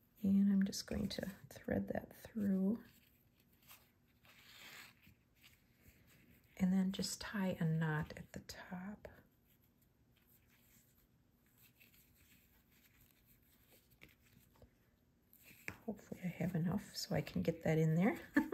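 Fingers fiddle with a small stiff strip, with faint rustles and clicks.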